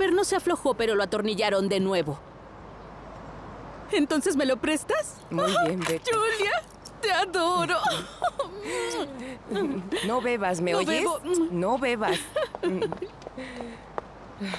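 A woman answers calmly nearby.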